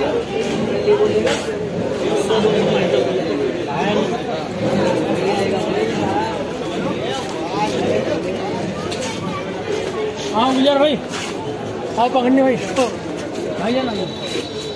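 A crowd of men chatter nearby outdoors.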